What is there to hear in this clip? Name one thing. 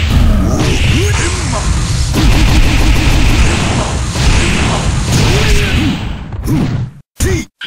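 Rapid punches and kicks thud and smack in a fighting game.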